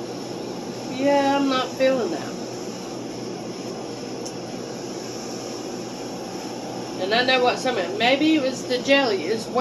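An older woman speaks with animation close by.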